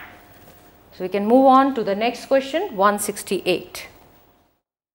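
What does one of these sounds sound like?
A woman speaks clearly into a close microphone, explaining.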